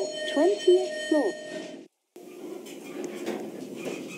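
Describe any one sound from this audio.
An elevator door slides open.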